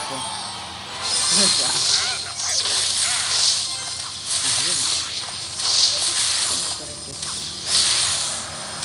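Game troops clash with bursts of swooshing and hitting.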